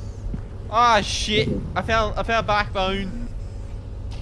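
A young man speaks loudly and with animation into a close microphone.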